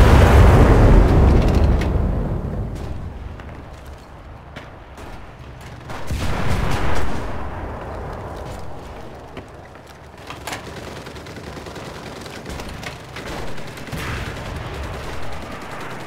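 Footsteps thud and creak on a wooden floor.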